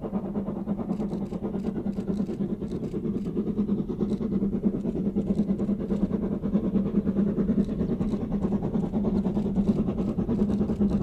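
A steam train's wheels clatter over the rails.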